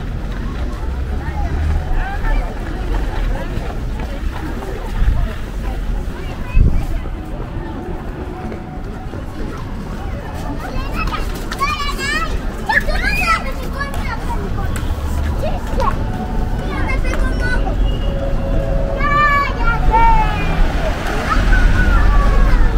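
A crowd murmurs and chatters outdoors in a street.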